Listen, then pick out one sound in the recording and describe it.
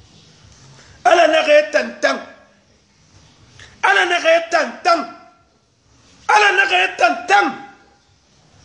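A man speaks forcefully in bursts, close to a phone microphone.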